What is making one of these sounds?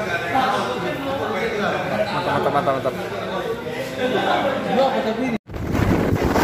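Several young men talk and chatter nearby in a room.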